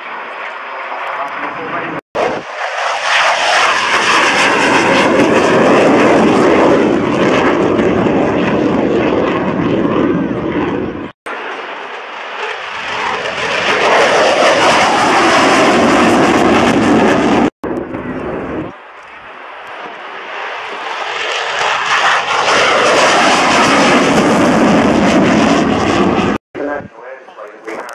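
A jet engine roars loudly overhead, rising and falling as the jet passes.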